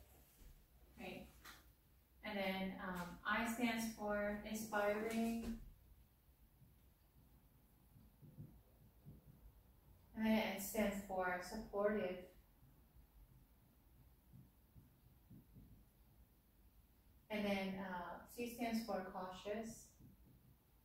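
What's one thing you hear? A woman speaks calmly in short phrases, with pauses between them.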